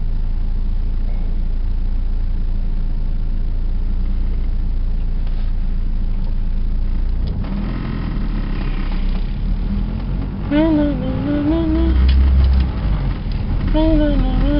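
A car engine hums low, heard from inside the car while driving.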